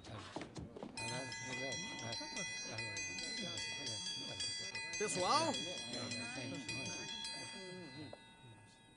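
A group of men chatter and shout excitedly.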